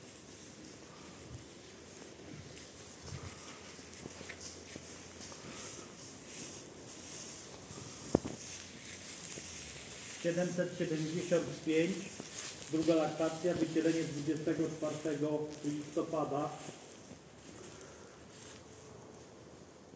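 Cattle hooves shuffle and rustle through dry straw.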